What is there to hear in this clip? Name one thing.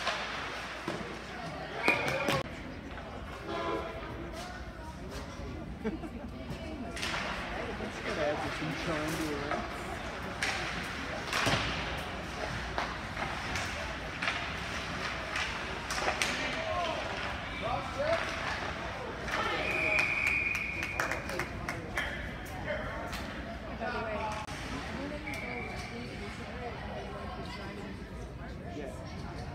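Hockey sticks clack against a puck and the boards.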